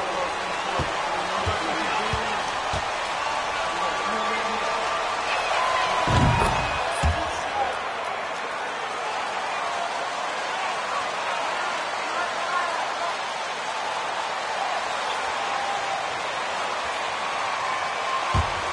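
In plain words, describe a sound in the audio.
A large arena crowd murmurs and cheers steadily.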